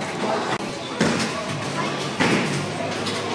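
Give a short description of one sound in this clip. Bowling pins crash and clatter in a large echoing hall.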